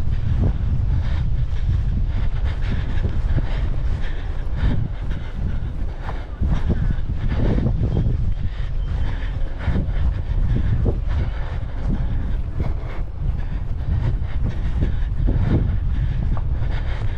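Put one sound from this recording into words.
Wind rumbles and buffets loudly across an open outdoor space.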